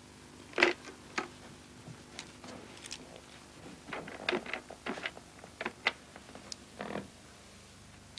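A telephone handset clatters as it is lifted and handled.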